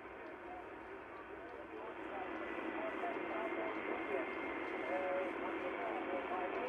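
A radio receiver hisses with shortwave static through a small loudspeaker.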